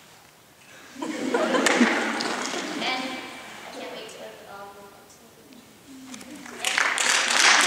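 A young woman speaks to a crowd.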